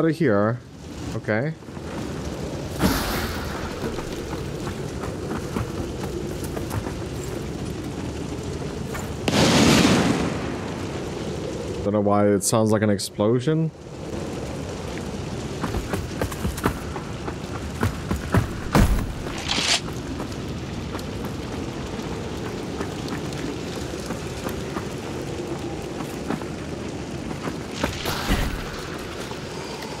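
Heavy footsteps thud on creaking wooden boards.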